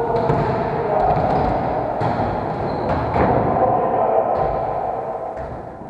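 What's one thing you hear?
Volleyballs thud sharply against hands and the floor in a large echoing hall.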